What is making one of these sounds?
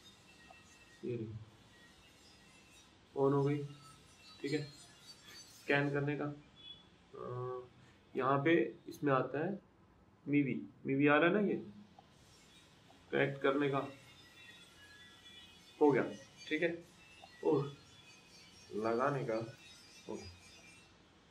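A young man speaks calmly and close by, in short bursts with pauses.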